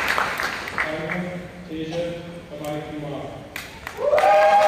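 A man announces through a loudspeaker in an echoing hall.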